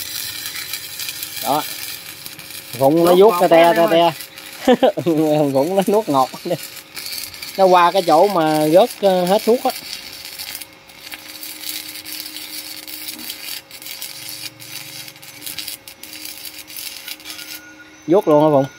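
A welding arc crackles and hisses steadily.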